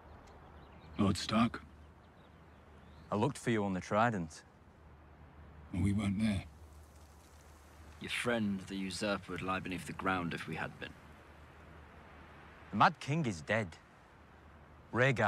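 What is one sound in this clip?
A man speaks in a calm, low voice, with long pauses.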